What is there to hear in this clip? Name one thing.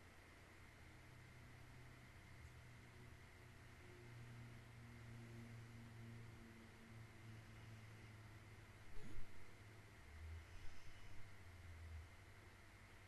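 A young woman hums softly close to a microphone.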